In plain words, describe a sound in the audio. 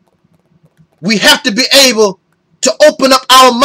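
A man speaks forcefully and with animation close to a microphone.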